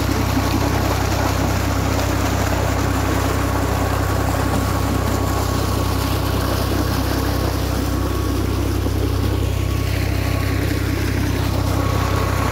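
Water gushes and splashes steadily from a pipe into a channel.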